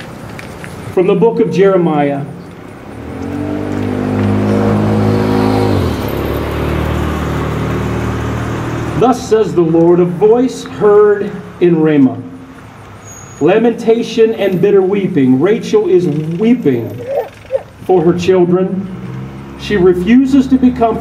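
An elderly man speaks calmly into a microphone outdoors, heard through a loudspeaker.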